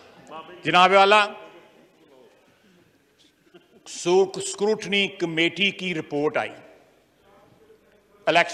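An older man speaks forcefully into a microphone in a large hall.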